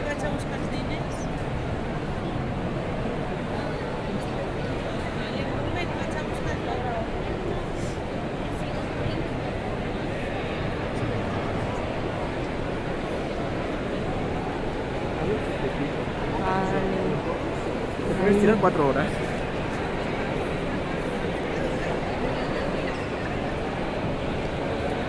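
A crowd murmurs and chatters in a large, busy hall.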